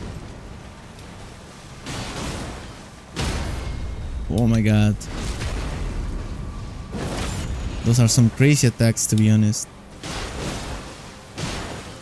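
Blades swish and clash in a fierce game fight.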